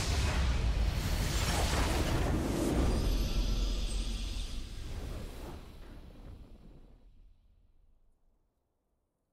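A loud blast booms in a video game and slowly fades away.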